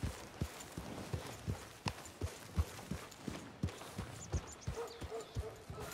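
Horse hooves thud on a soft dirt path at a steady walk.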